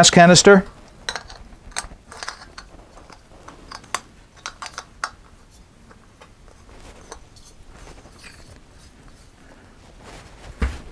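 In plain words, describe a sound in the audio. A gas canister clicks and scrapes against a metal fitting.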